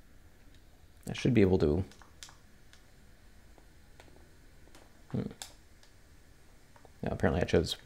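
Small buttons click softly under the thumbs.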